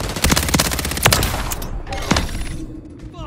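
Gunshots crack sharply in quick bursts.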